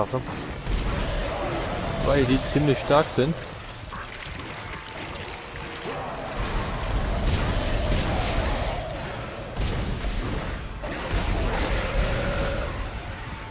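A plasma gun fires in short sharp bursts.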